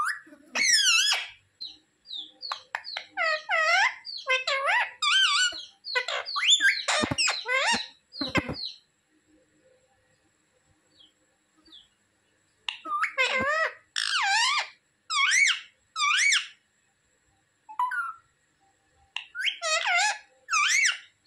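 A parrot squawks and chatters loudly nearby in short bursts.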